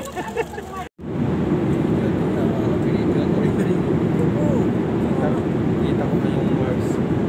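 An airplane cabin hums with a steady, low engine roar.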